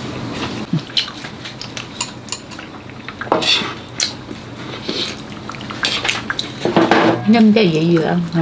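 Tongs and chopsticks clink against a pan and dishes.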